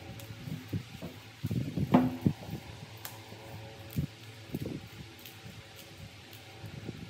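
Hands rustle lettuce leaves in a plastic colander.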